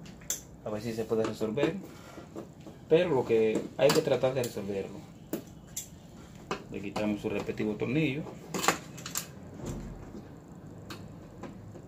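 Small plastic parts click as hands handle cables and boards.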